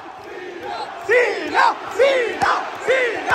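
A crowd chants in rhythm.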